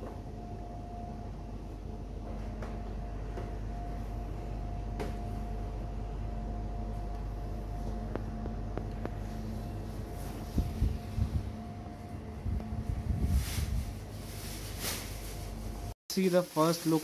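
A refrigerated display cabinet hums steadily.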